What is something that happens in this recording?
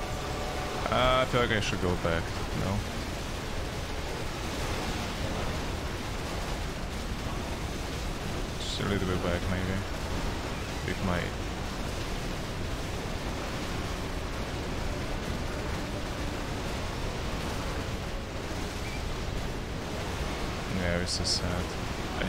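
A young man speaks casually into a nearby microphone.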